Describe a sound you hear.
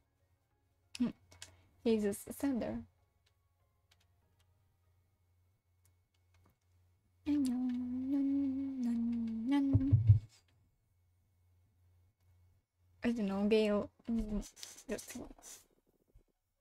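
A young woman speaks with animation into a microphone, close and clear.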